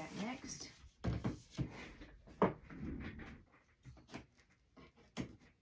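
Cardboard rustles and knocks as it is handled.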